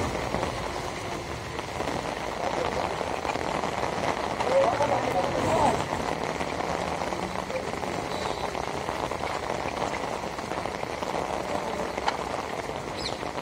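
Heavy rain falls on a wet paved street outdoors.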